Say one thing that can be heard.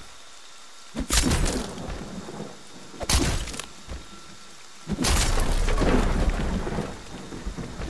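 Wooden planks crack and splinter as a door is smashed with heavy blows.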